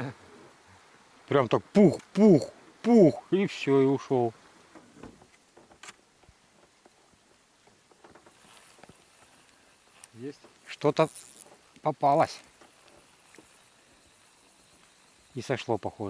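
Water laps gently against the side of a small boat.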